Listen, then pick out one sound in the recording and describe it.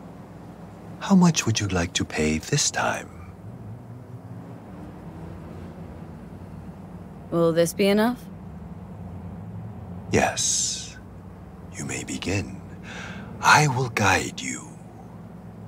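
An elderly man speaks calmly and quietly, close by.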